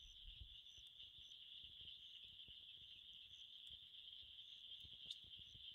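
A small fire crackles and flickers softly.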